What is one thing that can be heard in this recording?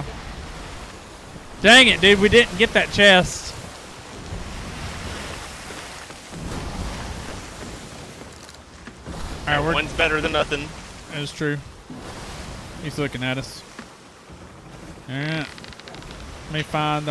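Waves wash and roll steadily.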